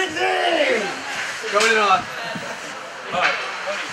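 Young men laugh and chat nearby in a large echoing hall.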